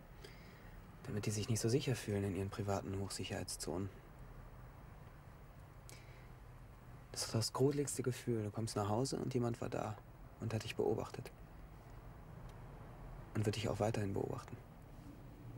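A young man speaks quietly and calmly nearby.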